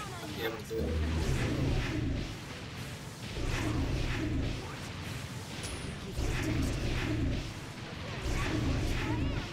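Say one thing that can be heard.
Loud explosive blasts boom and roar in bursts.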